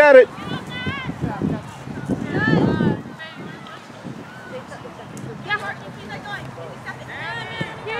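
Young women shout and call out outdoors.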